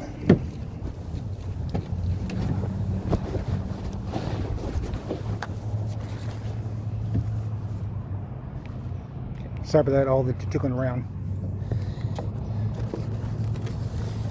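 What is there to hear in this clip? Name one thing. Clothing rustles and rubs close against the microphone.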